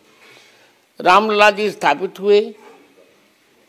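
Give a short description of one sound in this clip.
An elderly man speaks slowly and with emphasis into a close microphone.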